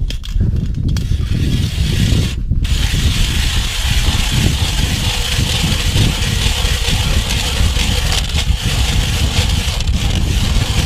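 A hand auger grinds steadily into ice.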